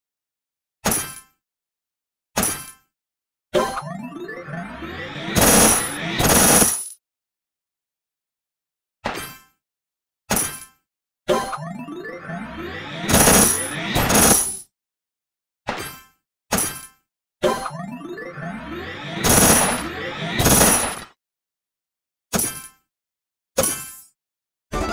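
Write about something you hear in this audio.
Game blocks pop with short bright chimes.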